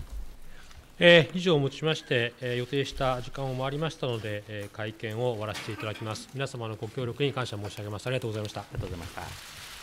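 A middle-aged man speaks calmly and formally through a microphone.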